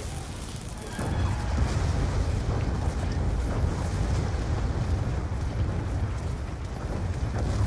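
Explosions boom one after another with deep rumbling blasts.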